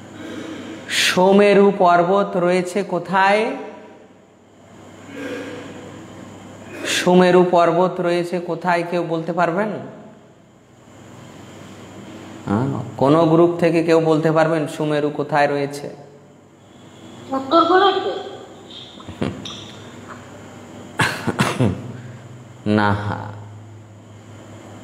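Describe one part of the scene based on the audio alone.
A man sings a melodic chant close to a microphone, in phrases with pauses between them.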